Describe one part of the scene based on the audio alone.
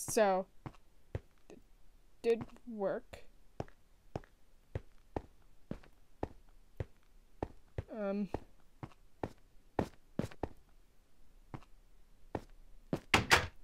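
Footsteps tap steadily across hard ground.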